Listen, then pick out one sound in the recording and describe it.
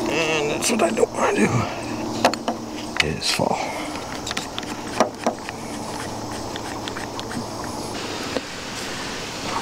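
Sharp knocks sound on a wooden roof frame outdoors.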